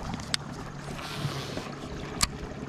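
A fishing line whirs out briefly during a cast.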